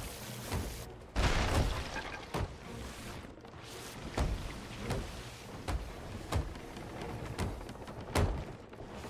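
Wooden planks are knocked into place with thuds.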